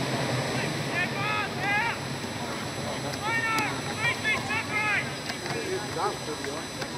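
Young men shout and call out loudly outdoors.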